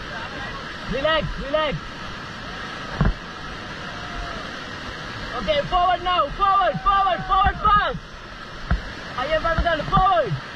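A group of young people shout and cheer in rising whoops close by.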